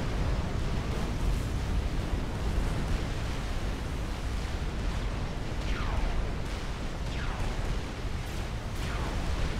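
Battle explosions rumble low and steadily.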